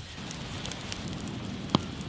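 A large bonfire of wood and dry palm fronds roars and crackles.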